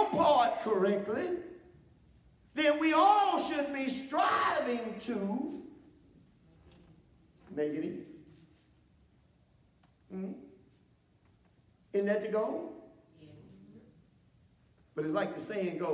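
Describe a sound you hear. A middle-aged man preaches with animation through a microphone in an echoing hall, pausing between phrases.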